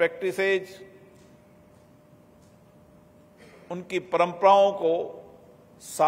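A middle-aged man speaks steadily into a microphone, heard through a loudspeaker in a large hall.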